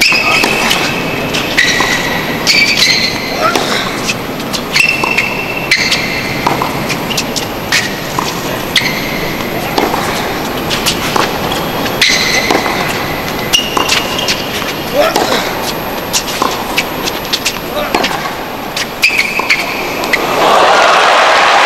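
A tennis ball is struck sharply by a racket.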